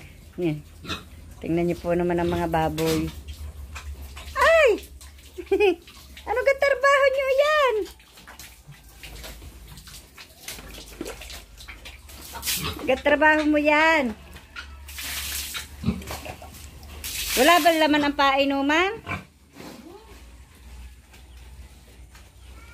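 Pigs grunt and snuffle nearby.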